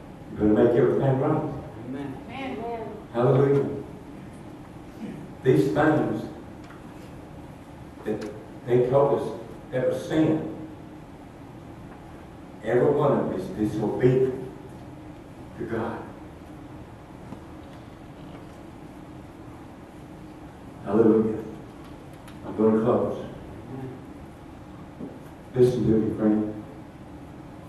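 An elderly man speaks through a microphone in slow phrases with long pauses, in an echoing room.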